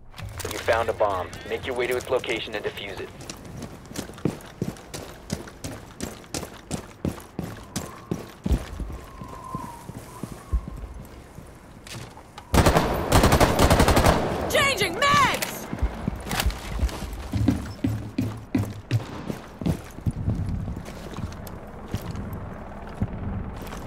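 Footsteps crunch quickly over gravel and hard floors.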